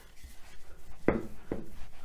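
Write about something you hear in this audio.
A rolling pin rolls over dough on a wooden board.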